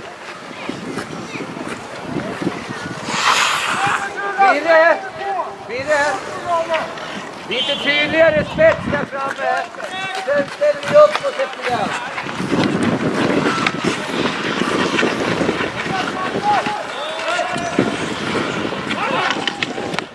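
Ice skates scrape and swish on the ice.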